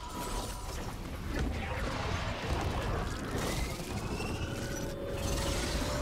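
Magic spell effects whoosh and crackle in a video game.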